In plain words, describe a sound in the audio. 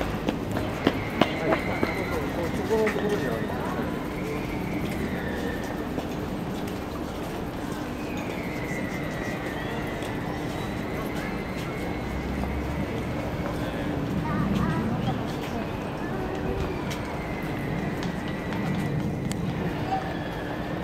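A bird calls in long, wavering whistles from a tree nearby.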